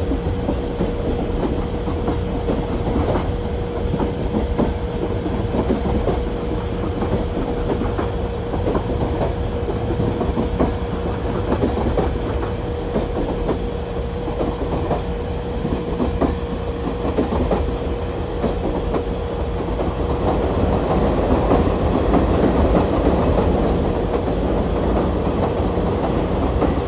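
A train engine hums and rumbles steadily.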